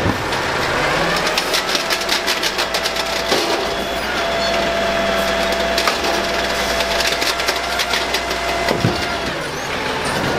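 A hydraulic arm whines steadily as it lifts and lowers a bin.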